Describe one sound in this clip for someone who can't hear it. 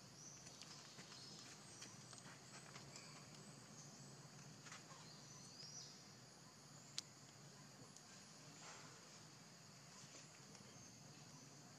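Small monkeys scamper and scuffle over rocks nearby.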